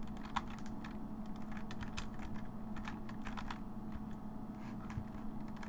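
Ammunition clicks as it is picked up.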